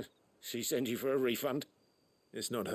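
A man asks a question in a calm voice.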